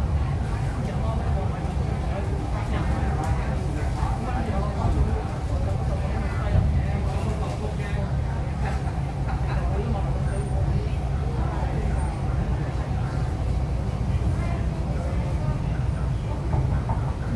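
A train rumbles steadily along the tracks from inside a carriage.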